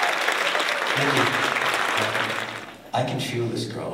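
A big band plays loudly.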